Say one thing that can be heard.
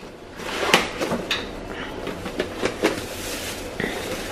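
A plastic container knocks against a hard surface.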